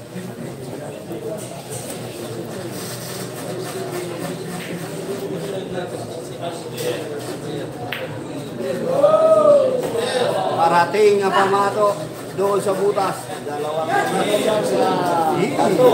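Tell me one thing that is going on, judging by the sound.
A crowd of young men murmurs and chatters nearby.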